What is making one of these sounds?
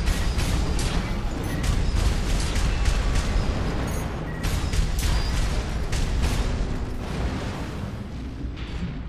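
Rapid gunfire rattles and booms.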